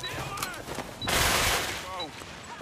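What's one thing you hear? A grenade bursts with a loud hissing blast.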